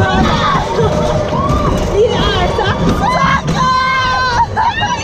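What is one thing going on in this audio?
A fairground ride rumbles and rattles.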